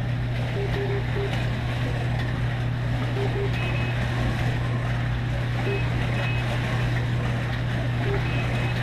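Small electric slot cars whir past along a track.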